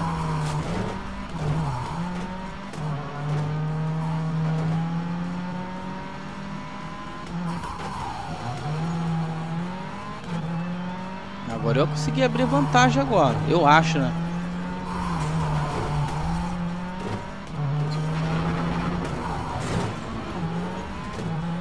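A rally car engine roars and revs steadily.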